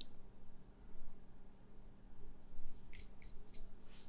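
An eraser rubs on paper.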